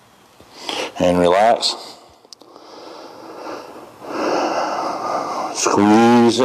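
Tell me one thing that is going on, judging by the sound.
A man groans with strain.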